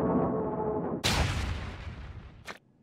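A heavy fist slams down into a soft pie with a loud squashing thud.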